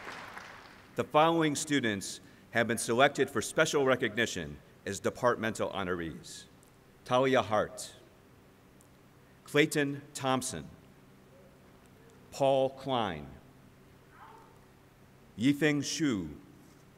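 A man reads out through a loudspeaker in a large echoing hall, in short phrases.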